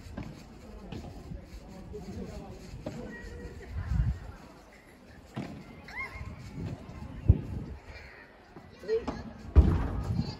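Padel rackets hit a ball back and forth with sharp pops.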